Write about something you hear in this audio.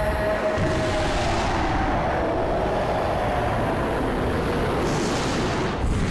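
A crackling energy surge roars loudly.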